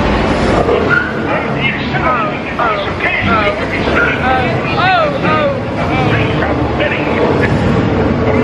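A crowd of riders screams and shouts with excitement.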